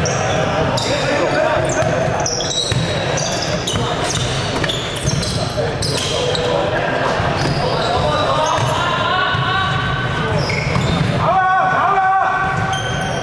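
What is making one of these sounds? Young players shout to each other across an echoing hall.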